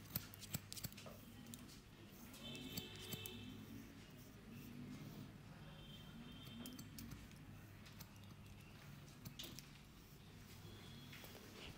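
A comb scrapes softly through a beard.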